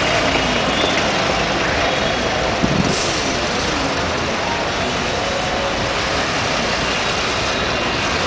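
A crowd of people murmurs nearby.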